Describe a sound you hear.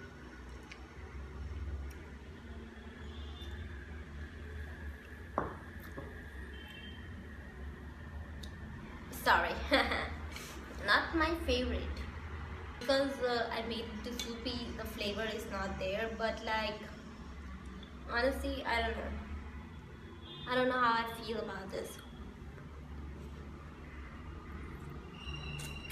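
A young woman slurps noodles close by.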